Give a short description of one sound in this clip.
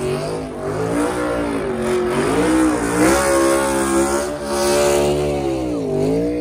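A race car engine roars loudly, revving up and down.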